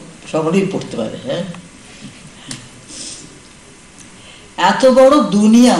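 An elderly woman reads aloud calmly into a microphone.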